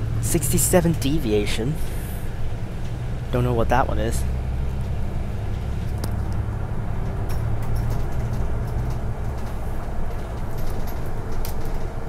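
A bus engine rumbles steadily, heard from inside the bus.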